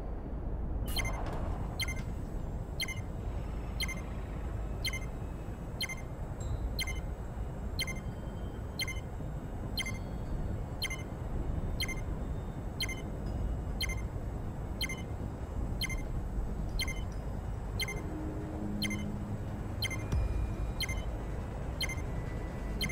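A countdown timer ticks sharply once every second.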